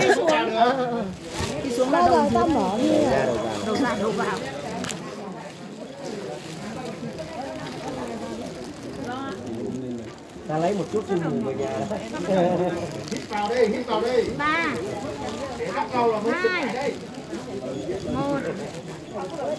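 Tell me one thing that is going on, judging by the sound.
Plastic rain ponchos rustle close by.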